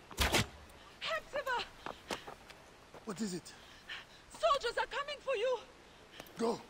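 A woman calls out urgently, close by.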